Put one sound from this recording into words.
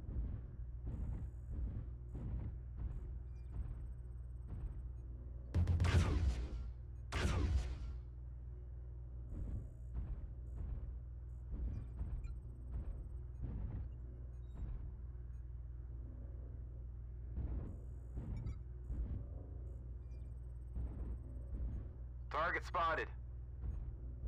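Heavy mechanical footsteps thud steadily.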